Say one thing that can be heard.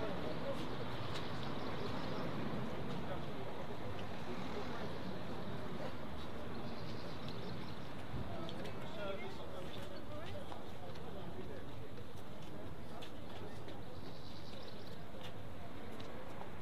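A crowd of men and women chat nearby outdoors.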